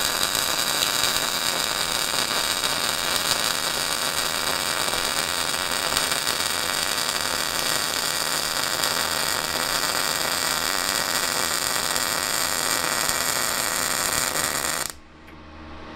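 An electric welding arc crackles and sizzles steadily, close by.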